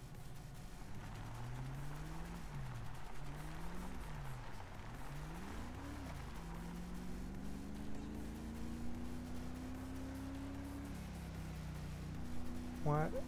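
A car engine revs up and down as the car pulls away and drives off.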